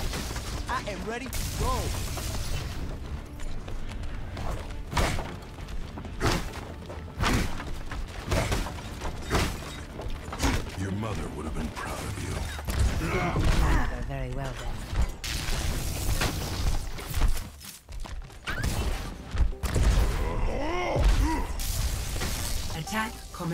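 Footsteps thud on wooden floors.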